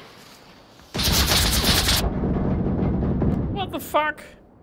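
A smoke grenade hisses loudly.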